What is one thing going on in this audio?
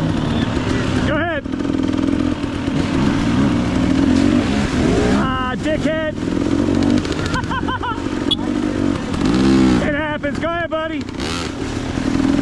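Another dirt bike engine revs nearby as it passes and pulls away.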